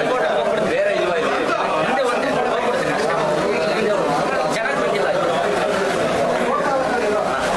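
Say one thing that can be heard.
A crowd of young men talk and shout over one another close by in a cramped, echoing room.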